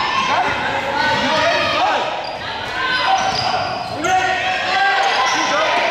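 Sneakers squeak sharply on a hardwood court in an echoing gym.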